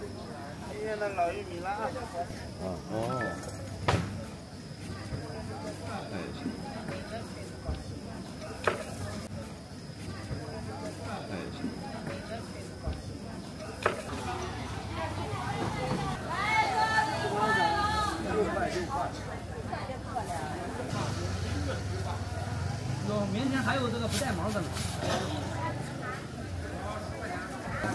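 Men and women chatter in a busy outdoor crowd nearby.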